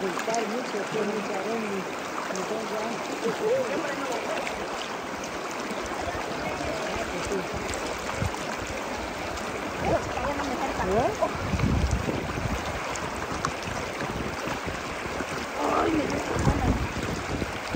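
A shallow river rushes steadily over rocks close by.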